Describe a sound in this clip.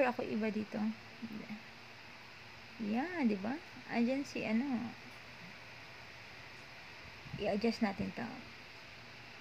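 A woman speaks calmly and close to a microphone, in short bursts.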